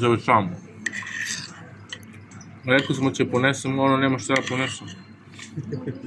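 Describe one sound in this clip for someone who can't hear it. A spoon scrapes against a clay dish.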